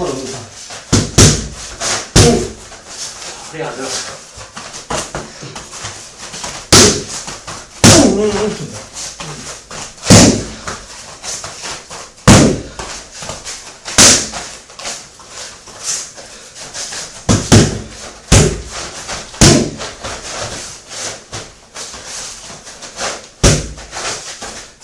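Bare feet shuffle and thump on a padded mat.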